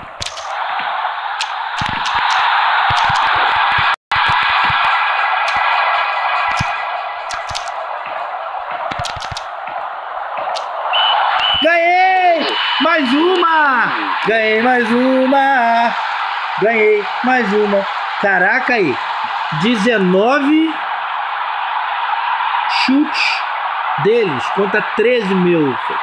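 A stadium crowd roars steadily from a video game.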